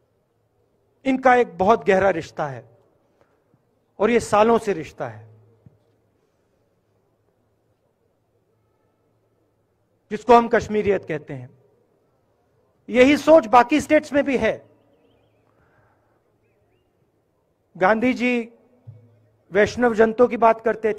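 A man speaks firmly into a microphone, pausing between phrases.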